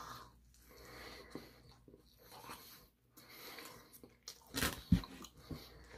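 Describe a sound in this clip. A young man chews food with wet smacking sounds.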